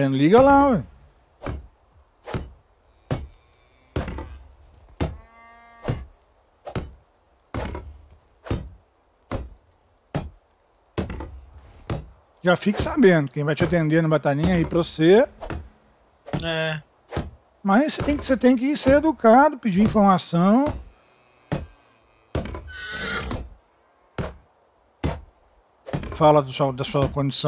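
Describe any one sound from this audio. A hammer knocks on wood in quick, steady blows.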